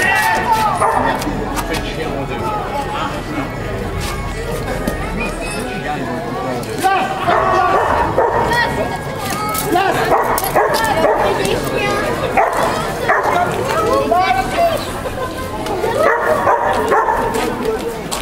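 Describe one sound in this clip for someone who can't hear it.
A crowd of men, women and children chatters all around outdoors.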